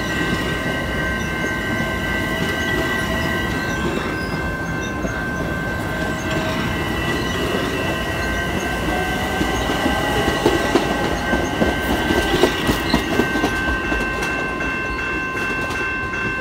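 A passenger train rumbles past close by along the tracks.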